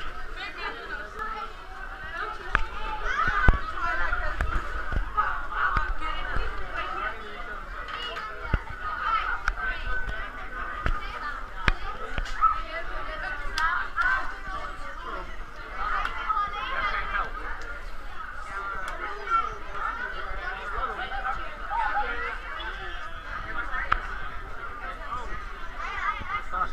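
A crowd of children and adults chatters indoors.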